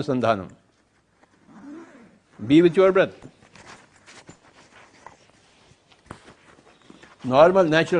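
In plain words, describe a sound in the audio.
A zipper is pulled on a bag.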